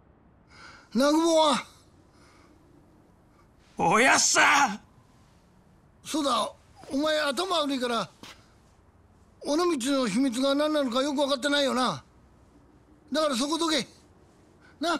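A middle-aged man speaks in a strained, pleading voice, close by.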